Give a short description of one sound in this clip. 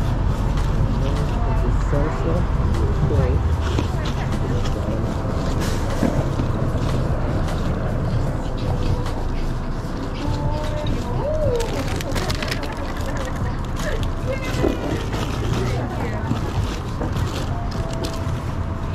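Backpack buckles clink close by.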